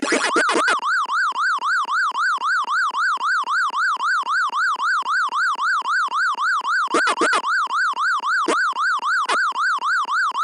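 Electronic chirps and blips sound as points are scored.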